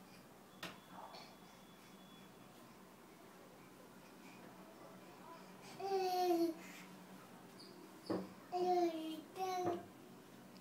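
A toddler's feet and hands thump on a wooden bench.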